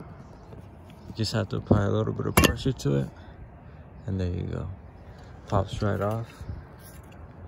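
A plastic light cover clicks as a hand pries it off.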